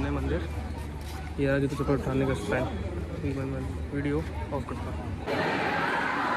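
People chatter nearby outdoors.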